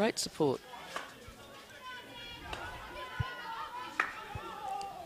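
Hockey sticks sharply strike a ball outdoors.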